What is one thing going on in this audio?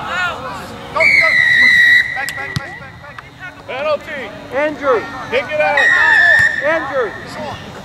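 A referee's whistle blows sharply, twice.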